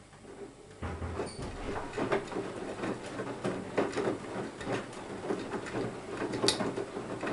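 A washing machine drum turns, sloshing water and thumping laundry.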